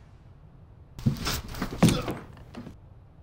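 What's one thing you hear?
A body thuds heavily onto the floor.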